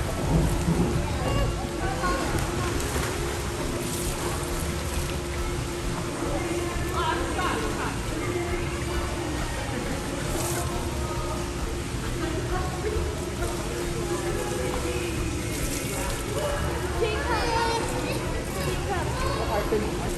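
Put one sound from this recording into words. Water splashes and laps in a large echoing pool.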